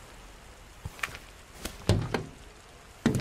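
A fuel nozzle clunks into a car's filler neck.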